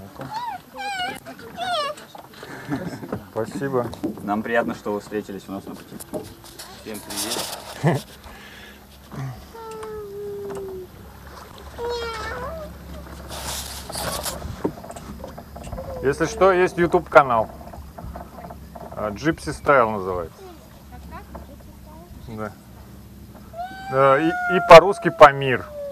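A child talks and laughs close by.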